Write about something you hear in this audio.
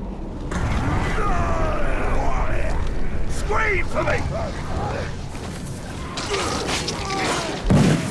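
Orcs grunt and roar as they fight.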